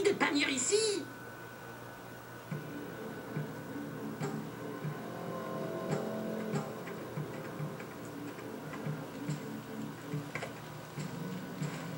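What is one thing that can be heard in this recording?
Soft music plays from a television speaker.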